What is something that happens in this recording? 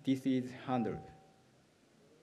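A young speaker talks calmly into a microphone.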